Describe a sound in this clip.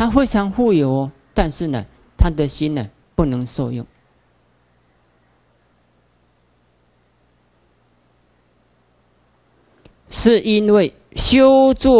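A man speaks calmly and slowly into a microphone, with long pauses.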